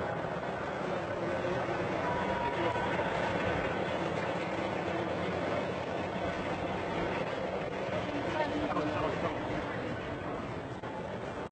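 A crowd of men chants together outdoors.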